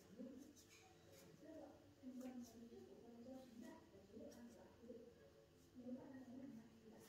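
Playing cards rustle and tap softly as they are handled.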